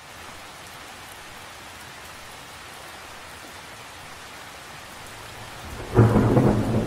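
Rain patters steadily on the surface of a lake outdoors.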